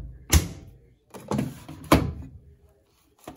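A plastic drawer slides open with a rattle.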